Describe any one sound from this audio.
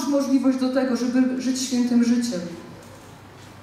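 A woman speaks into a microphone over loudspeakers in a large room.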